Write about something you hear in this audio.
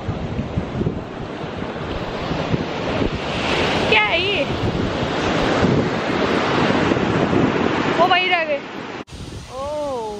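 Waves wash onto the shore.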